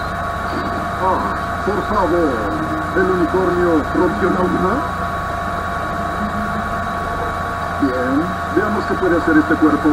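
A squeaky, girlish cartoon voice speaks.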